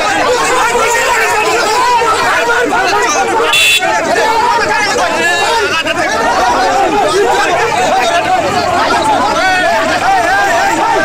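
A crowd of men shout and talk over one another close by, outdoors.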